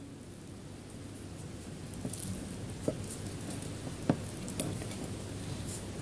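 A wooden spoon cuts through a stuffed pepper on a plate.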